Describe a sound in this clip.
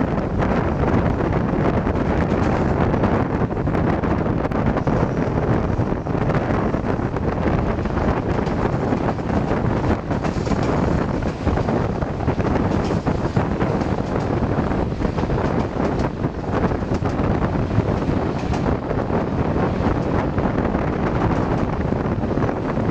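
A train rumbles steadily along the tracks, heard from an open window.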